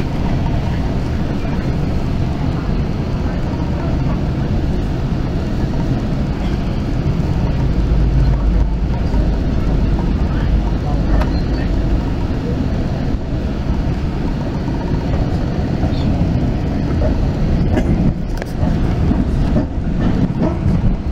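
A train rumbles and rattles steadily along its tracks.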